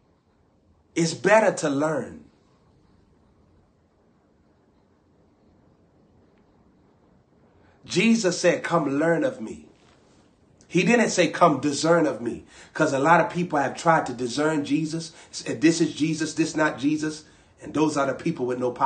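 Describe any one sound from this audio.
A young man speaks close to a microphone, with animation.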